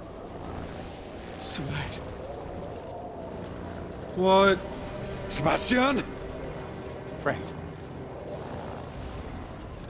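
A young man answers in a tense voice, close by.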